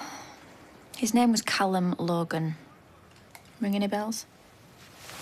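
A young woman speaks quietly and tensely nearby.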